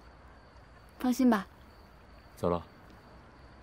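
A young woman answers briefly up close.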